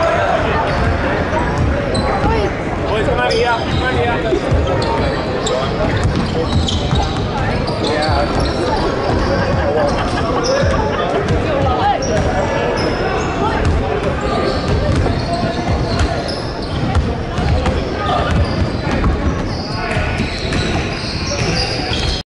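A crowd of people chatter in a large echoing gym.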